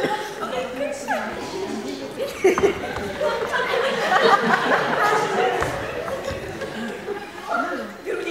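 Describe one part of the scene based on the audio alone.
Women speak and exclaim with animation in an echoing hall.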